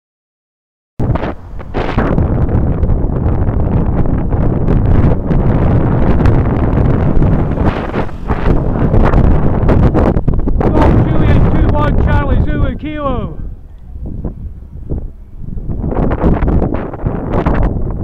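Wind rushes loudly past on a moving motorcycle.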